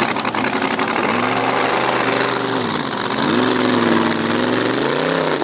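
A racing boat engine revs up and down as the boat speeds away.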